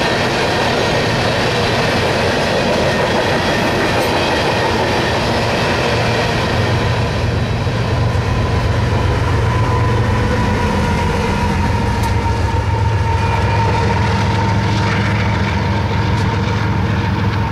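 Loaded hopper cars clatter along the rails.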